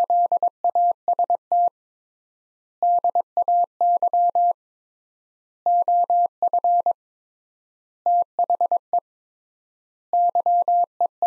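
A telegraph key taps out Morse code as quick, steady beeps in bursts with pauses.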